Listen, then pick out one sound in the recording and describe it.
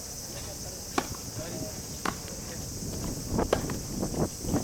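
A tennis ball is struck sharply with a racket.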